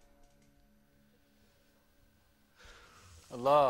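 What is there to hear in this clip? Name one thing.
A lute is plucked softly.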